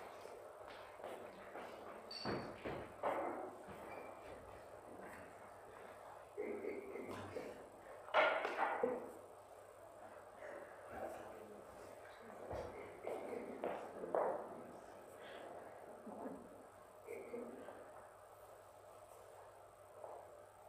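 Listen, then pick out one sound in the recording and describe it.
An elderly man speaks calmly near a microphone in an echoing room.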